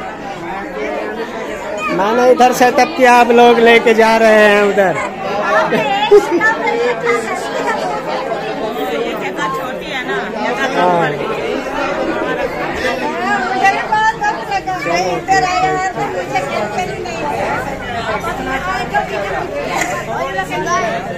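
A crowd of women chatter around.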